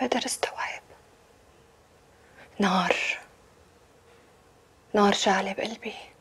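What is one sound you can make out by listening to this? A woman speaks tensely into a phone, in short bursts with pauses.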